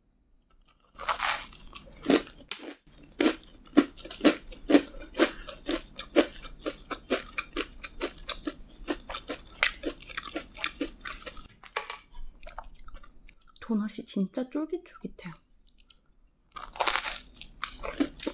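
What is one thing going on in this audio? A young woman bites into a crunchy doughnut close to a microphone.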